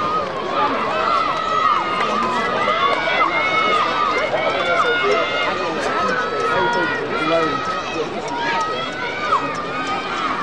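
A crowd of spectators cheers and shouts in the distance, outdoors.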